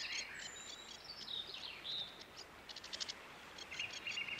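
A small songbird sings a rapid, chirping song.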